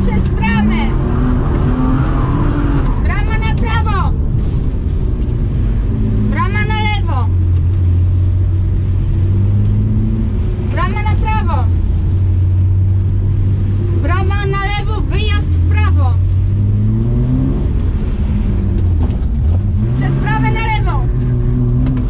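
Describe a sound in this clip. A car engine roars and revs up and down close by.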